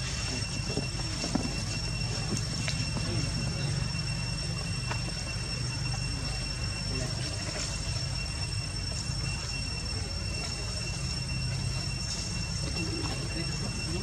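A baby monkey suckles softly.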